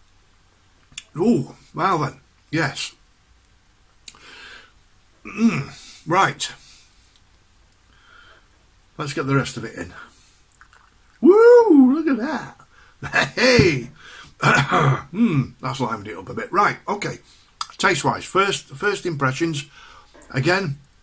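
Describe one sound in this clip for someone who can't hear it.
An older man speaks close to the microphone with animation.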